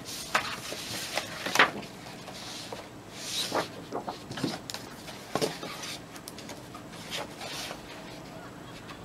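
Book pages rustle and flip as they are turned.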